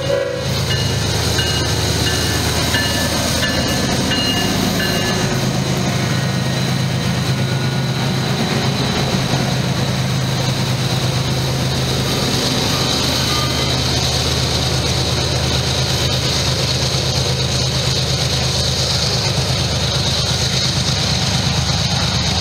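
Train wheels clatter and squeal on the rails as freight cars roll past.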